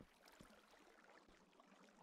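Lava bubbles and pops softly.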